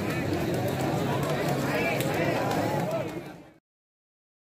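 Young men shout excitedly close by.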